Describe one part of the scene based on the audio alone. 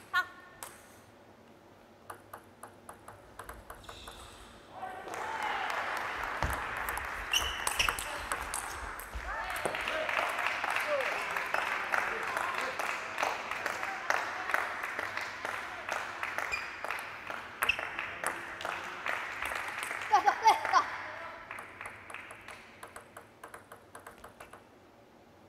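A table tennis ball bounces repeatedly on a table.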